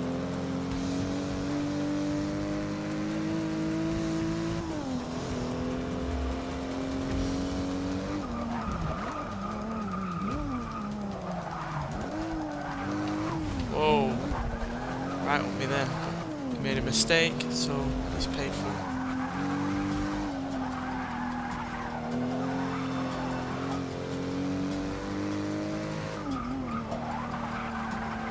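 A car engine roars steadily, rising and falling in pitch as gears shift.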